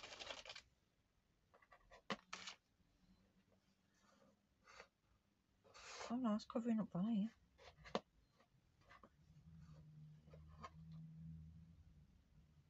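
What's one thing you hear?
Paper pieces rustle and slide softly across a board.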